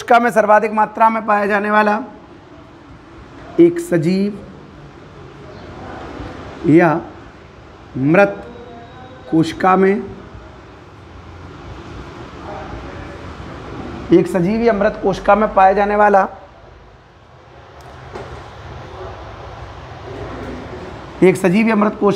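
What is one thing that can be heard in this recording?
A man speaks nearby, explaining with animation.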